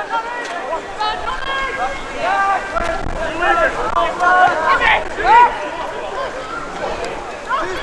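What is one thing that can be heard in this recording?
Young men shout to each other outdoors at a distance.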